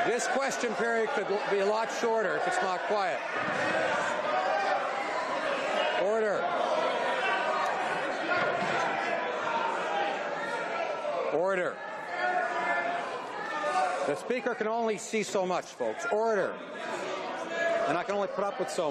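A middle-aged man speaks firmly and formally through a microphone in a large room.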